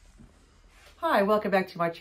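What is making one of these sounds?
A woman speaks loudly and animatedly close by.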